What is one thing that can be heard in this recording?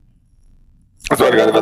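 A young man speaks quietly close to a microphone.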